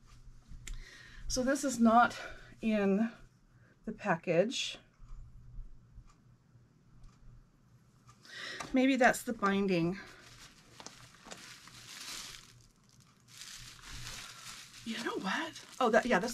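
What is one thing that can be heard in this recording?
Fabric rustles as a woman handles it.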